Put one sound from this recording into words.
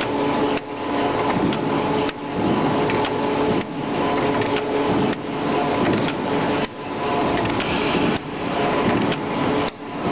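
A machine hums and whirs loudly with a repeating cycle.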